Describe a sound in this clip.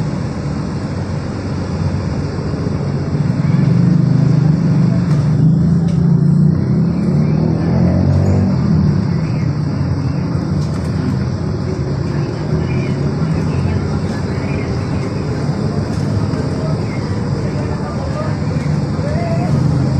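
A train rumbles steadily along.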